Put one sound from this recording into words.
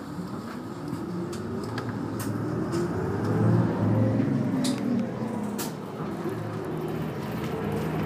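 A bus engine hums and rises in pitch as the bus pulls away.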